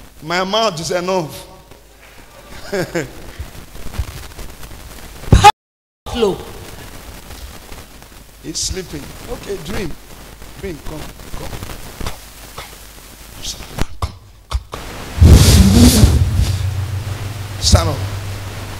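A man speaks loudly and with animation through a microphone in an echoing hall.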